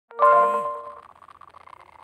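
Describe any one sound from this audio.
A short bright jingle chimes at the start.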